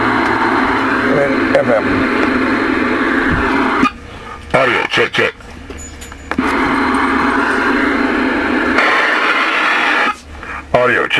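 A radio receiver hisses with loud static through its speaker.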